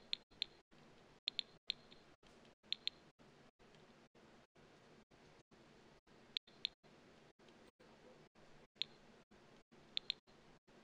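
Short, high interface clicks sound as items are picked one after another.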